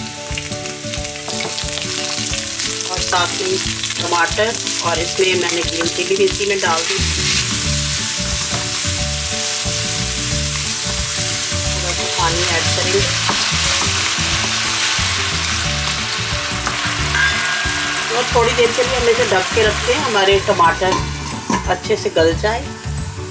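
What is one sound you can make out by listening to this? Food sizzles and crackles in a hot pan.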